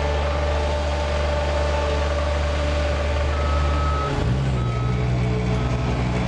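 A rake scrapes across asphalt.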